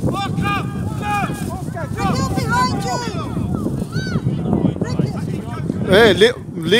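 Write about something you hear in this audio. Children shout and call out to each other outdoors, some close and some farther off.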